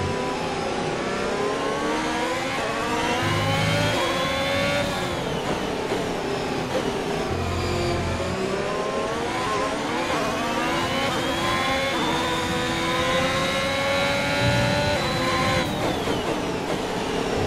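A racing car engine screams, rising in pitch through the gears and dropping as it brakes for corners.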